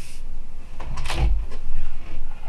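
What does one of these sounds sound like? A circuit board is set down on a wooden table with a soft knock.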